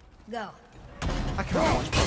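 An axe strikes with a heavy crack.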